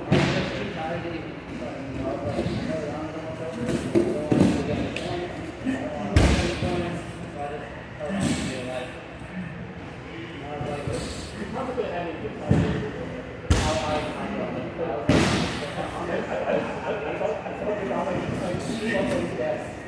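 Men talk nearby in a large echoing hall.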